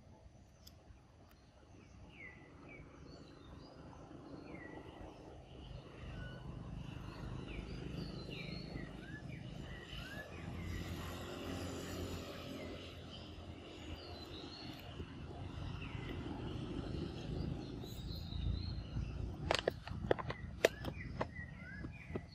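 A monkey chews fruit noisily close by.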